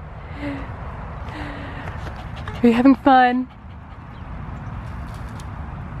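A dog pants close by.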